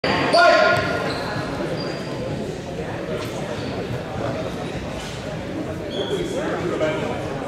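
Young people talk and call out in a busy murmur.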